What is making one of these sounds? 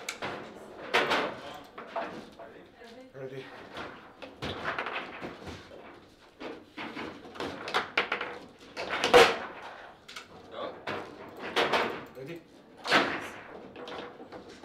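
Foosball rods rattle as they spin and slide.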